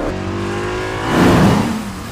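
A car roars past at speed.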